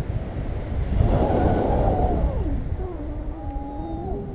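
A woman speaks close to the microphone.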